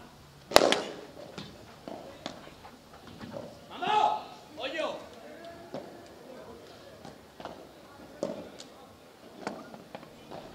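Padel rackets strike a ball back and forth outdoors.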